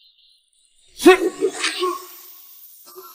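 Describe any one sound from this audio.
A man shouts sharply.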